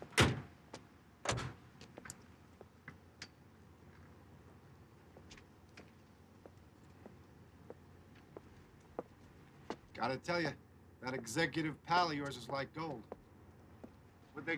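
Footsteps click on hard pavement.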